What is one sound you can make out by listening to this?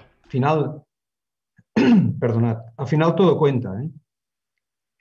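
A man speaks calmly through a microphone on an online call.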